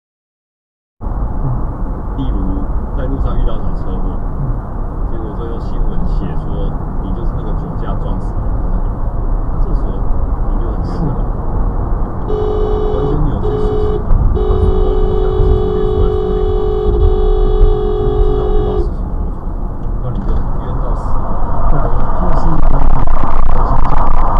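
Tyres rumble steadily on a highway from inside a moving car.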